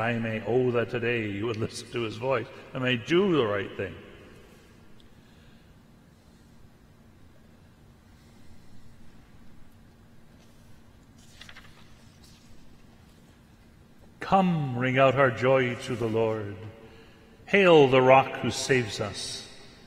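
An elderly man speaks calmly and steadily into a microphone, with pauses.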